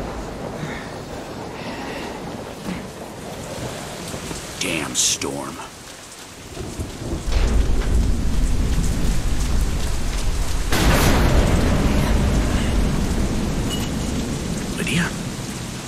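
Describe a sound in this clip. Wind gusts and howls outdoors in a storm.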